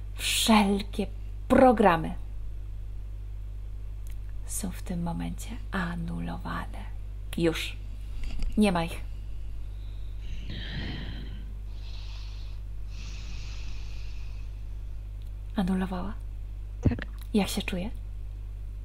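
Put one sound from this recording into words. A young woman speaks with animation through a headset microphone on an online call.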